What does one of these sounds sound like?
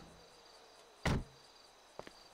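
A car door opens with a thud.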